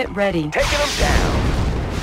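Weapons fire with sharp, quick shots.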